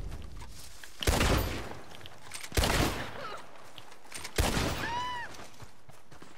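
Gunshots crack loudly, each followed by a rolling echo.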